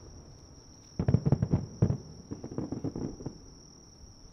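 Firework shells crackle and thud in quick bursts.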